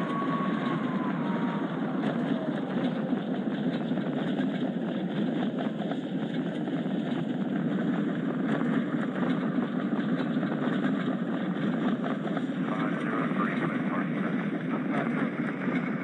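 A regional jet's engines hum at low power while taxiing.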